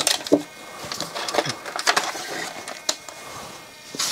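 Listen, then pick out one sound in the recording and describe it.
A plastic cassette clatters against a table.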